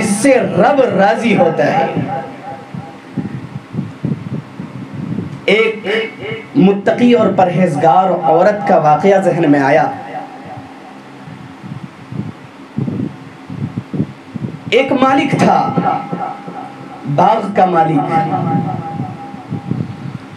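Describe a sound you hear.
A man speaks with animation into a microphone, heard over a loudspeaker.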